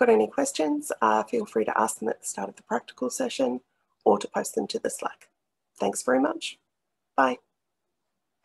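A woman speaks calmly into a microphone, heard as if over an online call.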